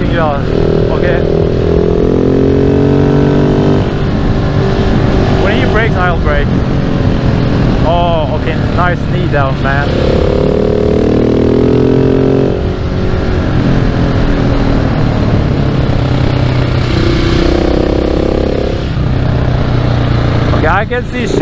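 A single-cylinder four-stroke supermoto engine revs and shifts through the gears.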